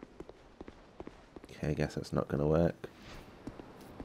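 Heavy footsteps thud on stone as a figure runs closer.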